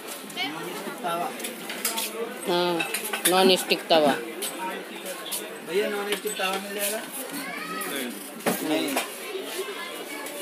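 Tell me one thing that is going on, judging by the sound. A man talks loudly and animatedly close by.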